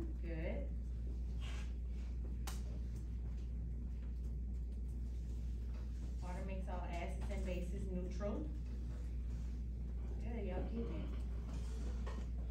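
A woman speaks calmly from across a room.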